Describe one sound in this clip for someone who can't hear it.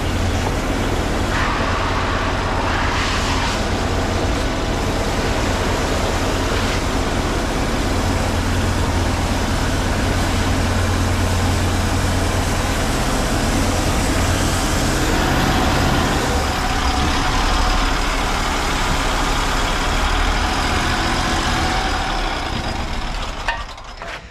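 A motor pump engine runs loudly and steadily.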